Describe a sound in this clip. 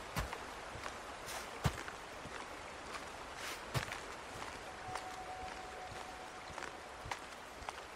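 Footsteps crunch on snow and ice.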